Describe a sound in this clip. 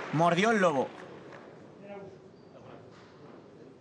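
Padel rackets hit a ball with sharp pops.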